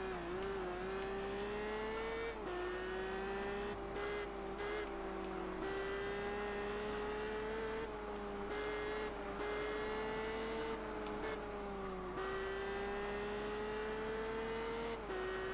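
A car engine hums steadily at high revs, dropping in pitch at each gear change.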